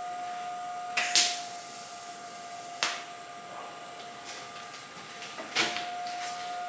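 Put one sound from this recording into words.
Metal parts clank lightly as a motorcycle frame is handled.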